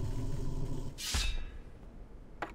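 An arrow is loosed with a sharp whoosh.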